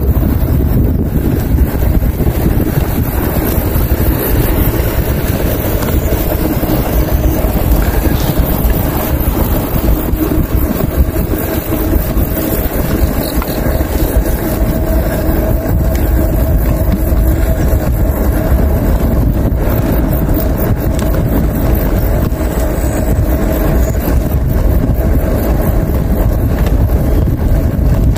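Wind rushes and buffets loudly while a bicycle rides along.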